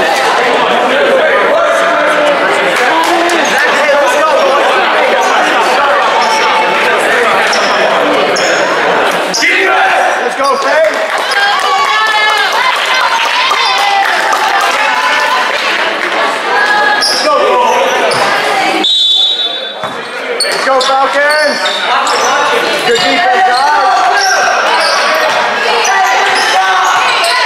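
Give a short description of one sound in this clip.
A crowd chatters and cheers in an echoing gym.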